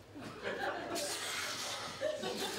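An audience laughs and cheers.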